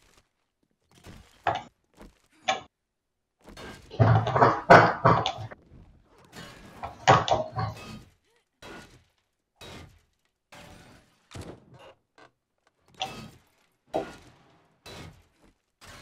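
A metal wrench strikes metal with repeated clanks.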